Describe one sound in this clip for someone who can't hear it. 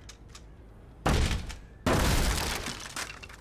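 Wooden boards crash and splinter loudly.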